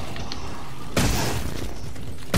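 An energy gun fires a short blast.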